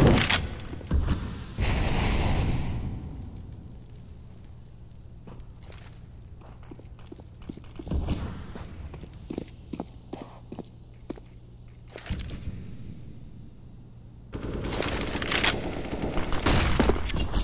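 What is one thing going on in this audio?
Footsteps run quickly on stone.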